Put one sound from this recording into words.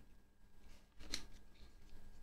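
A spring clip snaps shut onto a small metal part.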